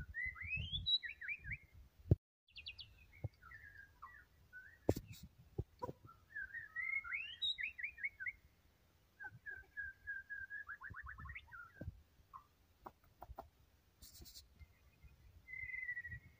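A songbird sings a varied song of quick whistles, trills and chirps close by.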